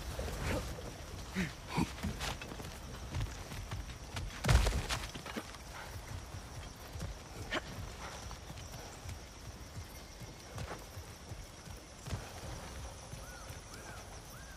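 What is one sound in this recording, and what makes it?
Heavy footsteps thud and crunch on rough ground and wooden boards.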